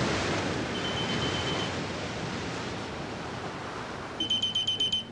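Waves splash and roar in strong wind.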